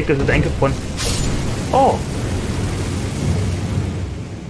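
Fire roars in a long blast of flame.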